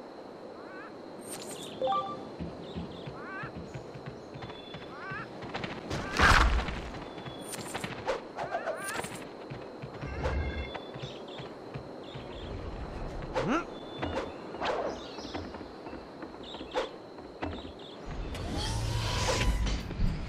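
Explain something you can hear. Quick footsteps patter across the ground.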